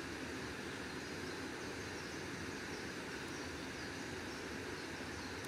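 A swollen stream rushes loudly over rocks close by.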